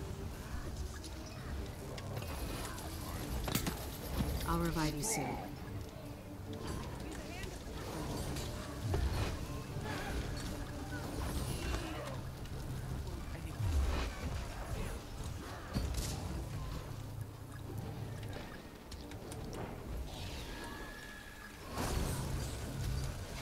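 Game spell effects crackle and whoosh during combat.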